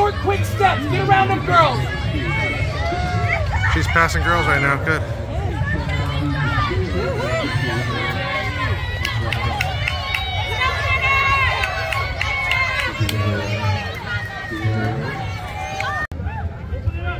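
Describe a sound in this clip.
A crowd of people chatter and call out.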